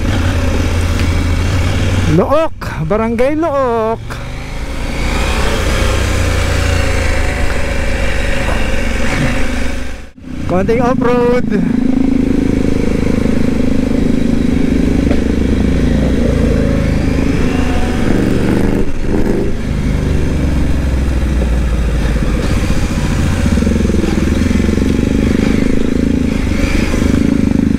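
A motorcycle engine hums steadily close by.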